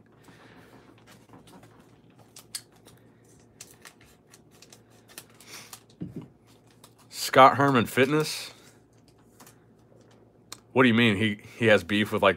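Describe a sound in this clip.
A foil wrapper crinkles as it is handled.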